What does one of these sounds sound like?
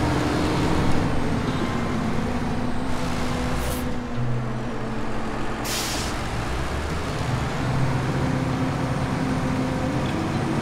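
A heavy truck engine rumbles and strains steadily.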